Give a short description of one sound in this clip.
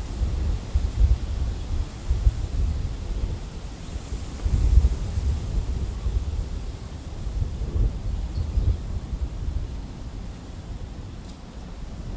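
Wind buffets and rumbles outdoors in gusts.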